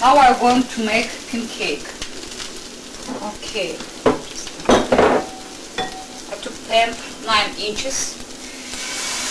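An older woman talks calmly nearby.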